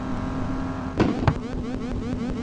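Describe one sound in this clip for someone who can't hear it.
A car crashes with a loud bang.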